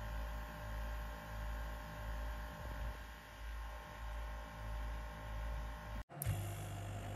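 A compact air compressor hums with a low, steady drone.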